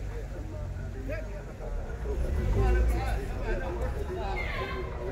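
Several adults talk nearby outdoors.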